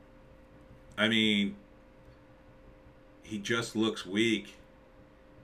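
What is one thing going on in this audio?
An older man speaks in short bursts, close to a microphone.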